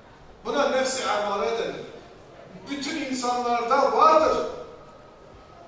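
A man sings loudly through a microphone in a large room, with long held notes.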